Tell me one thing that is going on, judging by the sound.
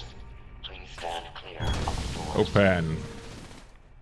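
A young man speaks with animation, close to a microphone.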